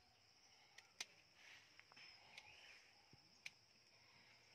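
A fruit snaps off a cactus stem with a sharp crack.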